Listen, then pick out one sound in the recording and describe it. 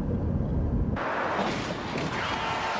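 Traffic rushes past on a highway.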